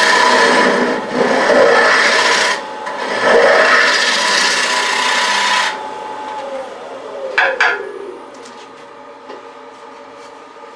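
A lathe motor whirs, then slowly winds down.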